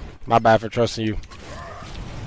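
A young man speaks with animation into a close microphone.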